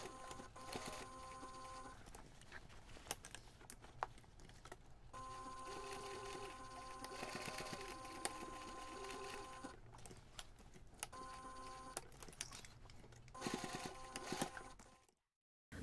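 A sewing machine hums and whirs in short runs as it stitches.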